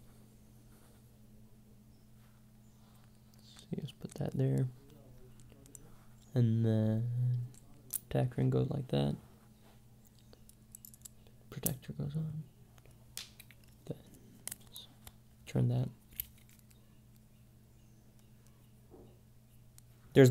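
Small plastic parts click and snap together.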